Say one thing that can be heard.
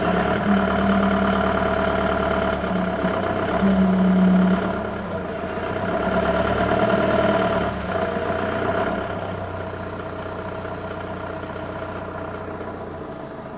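An electric forklift motor hums and whines as it drives slowly.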